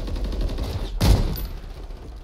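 A loud blast booms close by.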